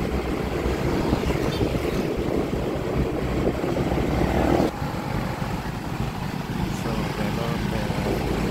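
A motorbike engine hums steadily nearby.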